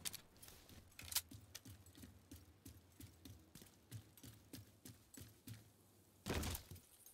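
Footsteps thud steadily on hard ground.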